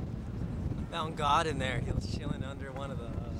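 A second young man talks close by.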